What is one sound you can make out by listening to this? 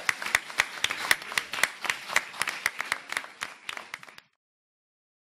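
An audience applauds in a large hall, then the clapping fades out.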